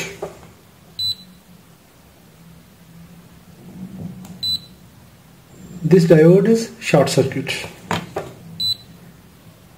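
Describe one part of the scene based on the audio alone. A multimeter gives short high beeps.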